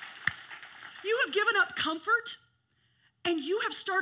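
A middle-aged woman sings loudly and passionately.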